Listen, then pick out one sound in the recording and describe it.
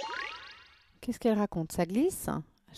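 A young woman speaks with animation close to a headset microphone.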